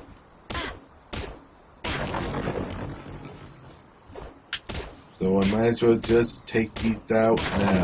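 A weapon strikes wood with sharp knocks.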